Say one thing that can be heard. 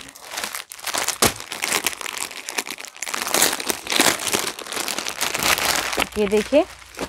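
Plastic packaging crinkles and rustles as it is handled.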